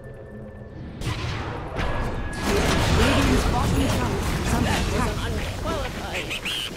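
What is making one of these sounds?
Magic spells burst and crackle in a fierce fight.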